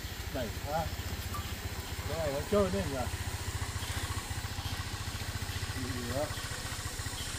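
A man talks briefly nearby.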